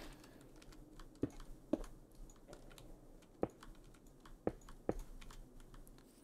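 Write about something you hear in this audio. Blocks crunch as they are broken and placed.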